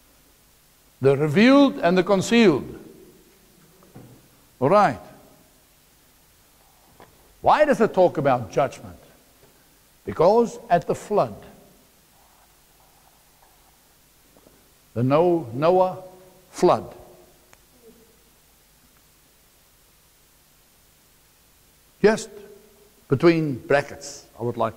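A middle-aged man speaks with animation in bursts, close to a microphone.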